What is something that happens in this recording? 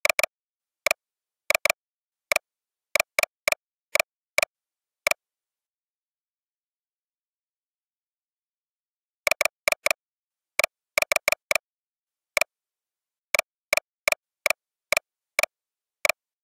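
Keys click sharply on a keyboard.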